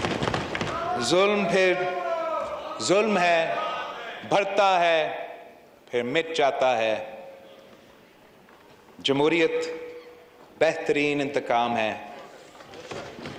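A young man speaks with animation through a microphone in a large echoing hall.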